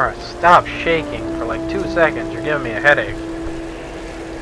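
Rain falls in a storm.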